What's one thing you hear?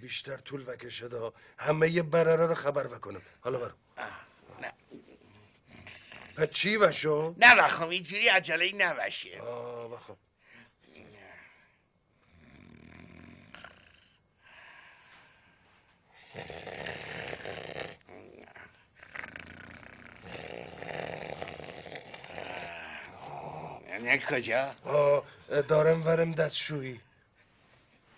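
A middle-aged man laughs and talks nearby.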